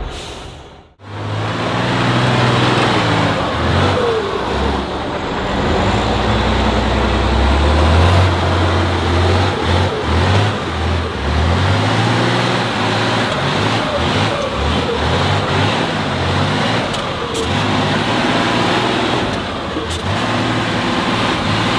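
Large tyres crunch and grind over dirt.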